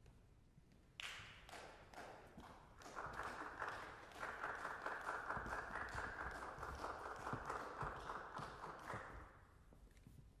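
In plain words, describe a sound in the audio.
Footsteps cross a stage in a large hall.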